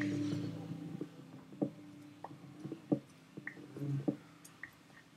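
An axe chops wood with repeated hollow knocks.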